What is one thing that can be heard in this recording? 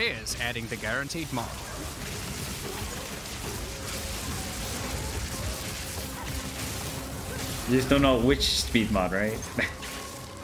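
Magic spells crackle and burst.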